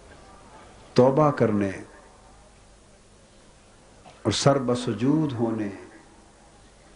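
A middle-aged man speaks forcefully into a microphone, heard through loudspeakers in short bursts.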